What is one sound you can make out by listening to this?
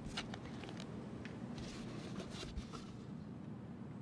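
A cardboard box's lid lifts off with a soft scrape.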